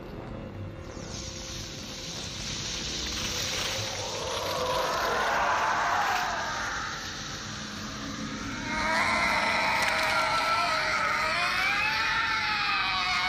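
A fiery burst fizzes and sizzles steadily.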